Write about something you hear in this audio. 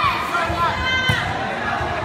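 A volleyball is hit with a sharp smack.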